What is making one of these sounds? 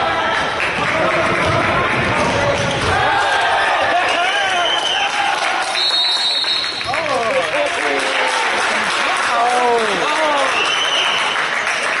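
Sneakers squeak sharply on a gym floor.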